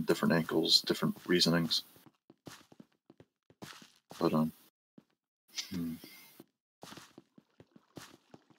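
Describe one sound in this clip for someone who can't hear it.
Footsteps tap softly on stone.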